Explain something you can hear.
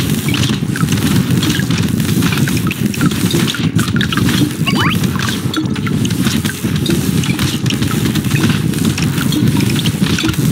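Small explosions pop again and again in a video game.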